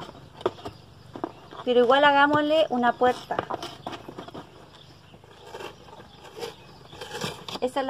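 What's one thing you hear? A cardboard box is opened with light scraping and tapping.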